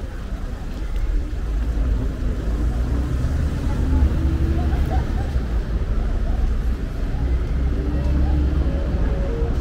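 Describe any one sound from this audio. People chatter in a busy street nearby.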